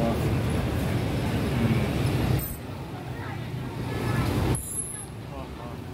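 Motor scooter engines idle and rumble nearby.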